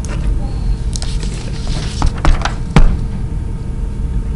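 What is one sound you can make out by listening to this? Paper rustles as a man handles a sheet.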